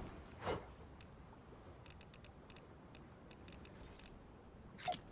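Soft electronic ticks click rapidly in quick succession.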